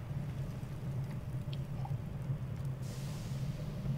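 A young woman sips from a mug.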